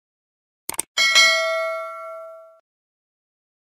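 A bell chimes brightly and fades.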